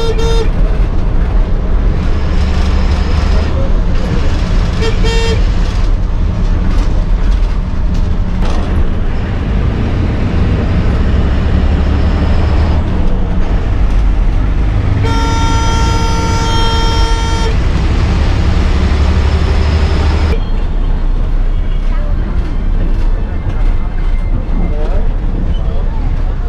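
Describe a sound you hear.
A bus engine rumbles steadily as the bus drives along a road.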